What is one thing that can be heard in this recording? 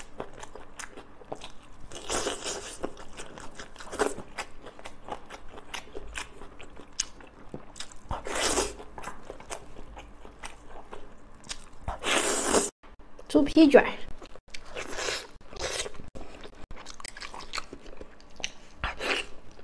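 A young woman chews food wetly and noisily close to a microphone.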